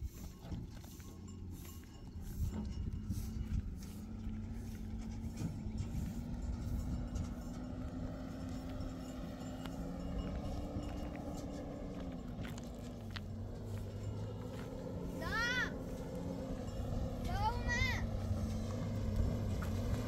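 A truck engine drones steadily as the truck approaches over a dirt track.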